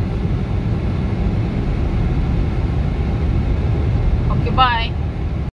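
A car's engine and tyres rumble steadily from inside the moving car.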